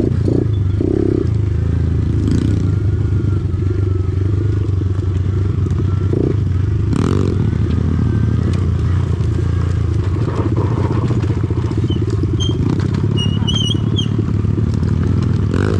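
Tyres roll and crunch over a dirt trail.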